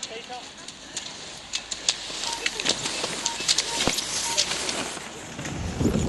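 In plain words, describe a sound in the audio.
Skis swish over packed snow as skiers glide past.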